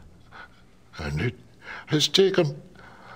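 An elderly man speaks gravely and close by.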